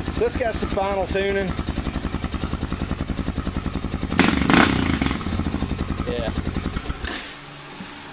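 A motorcycle engine idles with a steady, chugging throb, then shuts off.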